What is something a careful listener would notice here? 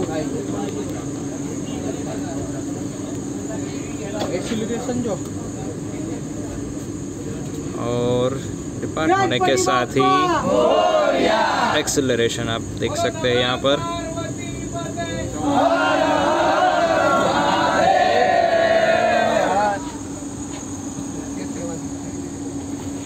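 A train rumbles along with a steady low hum.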